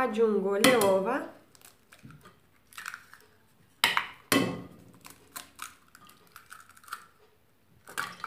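An egg cracks against the rim of a bowl.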